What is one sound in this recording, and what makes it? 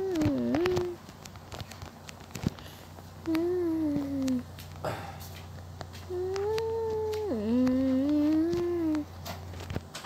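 A young boy hums a wavering tune close to a microphone.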